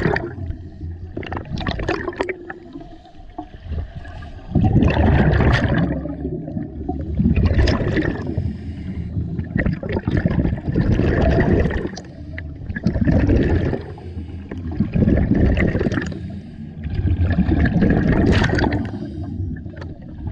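A scuba diver breathes out through a regulator underwater, sending up gurgling bubbles in regular bursts.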